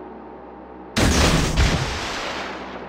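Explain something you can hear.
Torpedoes launch with a sudden loud whoosh.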